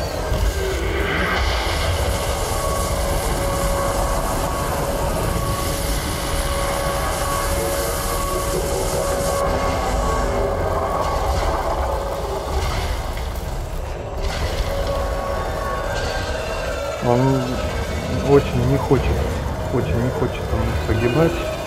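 A spacecraft engine hums with a deep, steady rumble.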